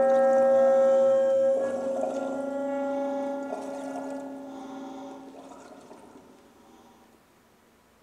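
Sustained, ringing instrument tones hold and slowly fade away.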